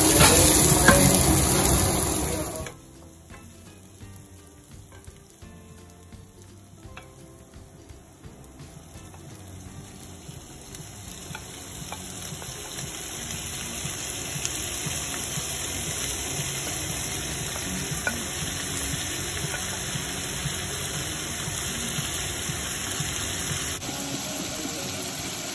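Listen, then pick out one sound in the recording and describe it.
Onions sizzle softly in a hot pan.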